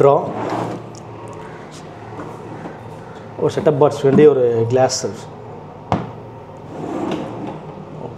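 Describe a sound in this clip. Wooden drawers slide open and shut.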